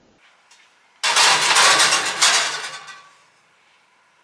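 A glass dish scrapes onto a metal oven rack.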